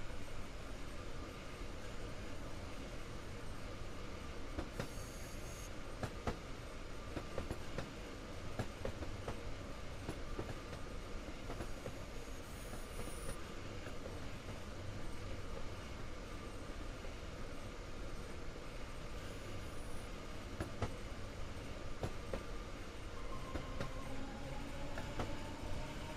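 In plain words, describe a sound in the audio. Train wheels clatter and click over rail joints.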